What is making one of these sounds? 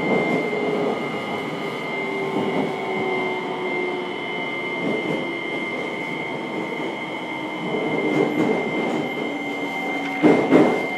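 An electric train stands at a platform, humming with a steady high whine.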